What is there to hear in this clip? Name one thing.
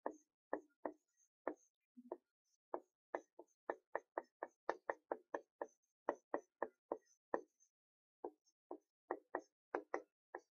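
A marker taps and squeaks against a whiteboard in quick short strokes.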